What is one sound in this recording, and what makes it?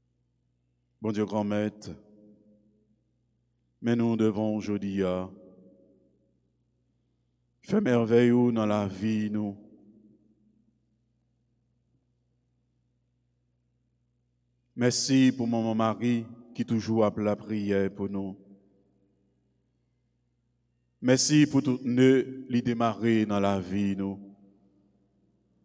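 A man reads aloud slowly into a microphone, in short phrases with pauses, in an echoing room.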